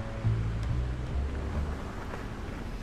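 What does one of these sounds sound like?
A car engine hums as a car drives slowly along a muddy track.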